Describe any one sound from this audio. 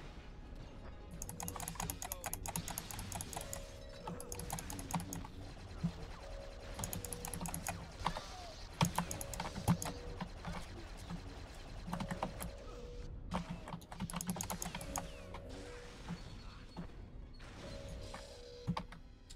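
Lightsabers hum and clash in a fight.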